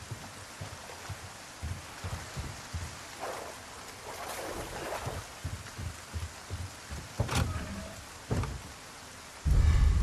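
Footsteps thud on a hard surface.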